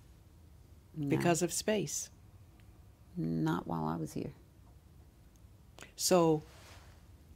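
An elderly woman speaks calmly and slowly in short phrases, close to a microphone.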